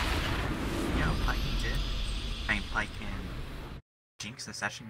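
A short video game victory fanfare plays.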